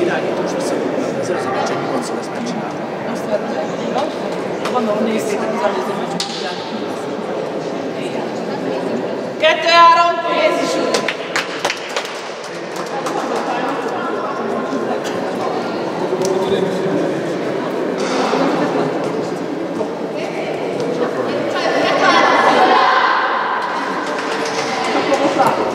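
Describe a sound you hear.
A group of young girls chatter in a large echoing hall.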